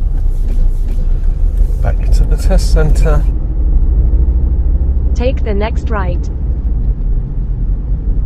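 A car engine hums steadily with road noise inside the car.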